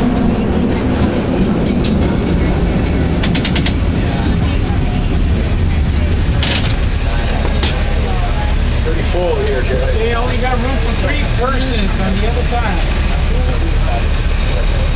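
A crowded vehicle rumbles and rattles steadily as it rolls along.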